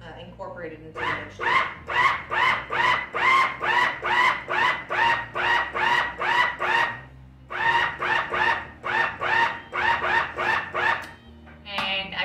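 A food processor whirs in short, quick bursts.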